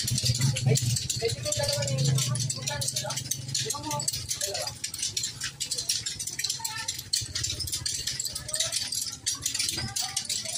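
Young people chatter and call out outdoors.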